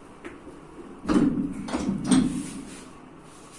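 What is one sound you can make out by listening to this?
A man grunts and strains with effort.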